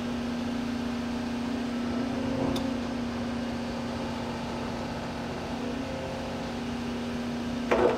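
A diesel crawler excavator's engine runs under load.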